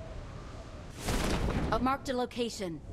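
A parachute snaps open with a sudden whoosh.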